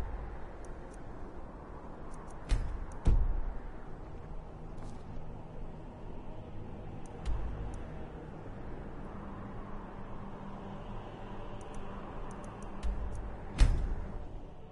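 Game menu sounds click and whoosh as selections are made.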